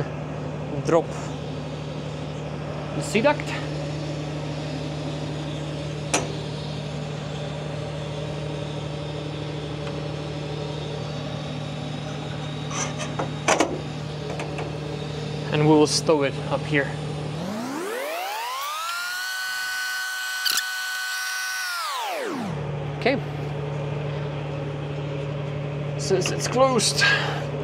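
Metal parts clink and click as a worker handles them.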